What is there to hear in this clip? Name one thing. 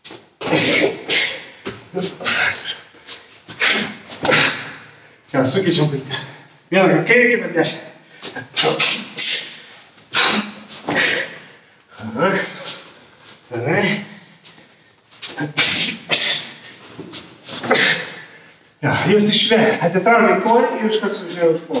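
A middle-aged man speaks with animation in an echoing room.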